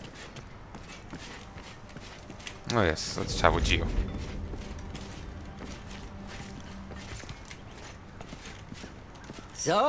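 Footsteps tread on a stone floor.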